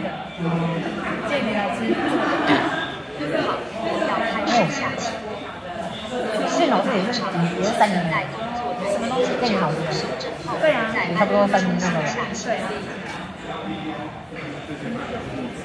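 Children and adults talk and chatter nearby in a busy room.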